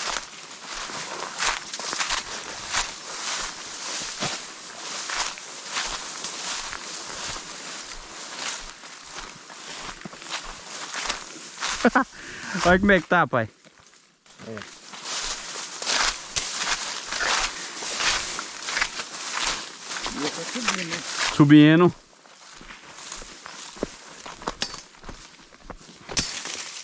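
Dry grass and leaves rustle and crunch underfoot as someone walks.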